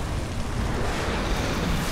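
A magical blast crackles and roars.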